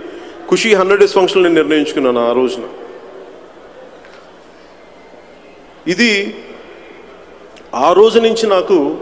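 A man speaks forcefully into a microphone, heard through loudspeakers in a large hall, with long pauses.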